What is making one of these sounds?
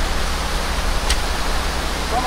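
A fishing rod swishes as a line is cast.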